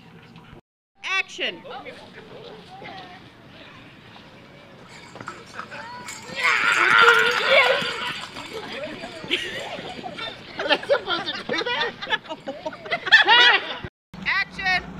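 Children chatter and shout excitedly nearby.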